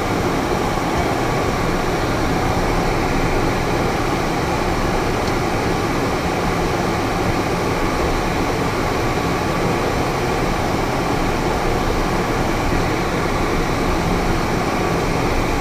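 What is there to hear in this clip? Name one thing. Wind rushes loudly past the plane's canopy.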